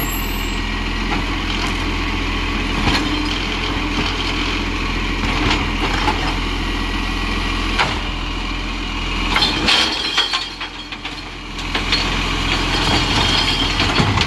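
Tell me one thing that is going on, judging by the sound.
A truck's hydraulic arm whirs and clanks as it lifts a wheelie bin.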